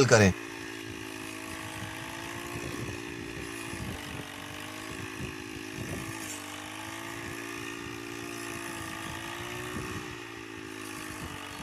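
A small two-stroke engine drones steadily, its pitch wavering slightly.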